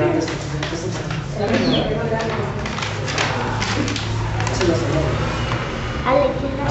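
A small crowd of men, women and children chatter and call out nearby.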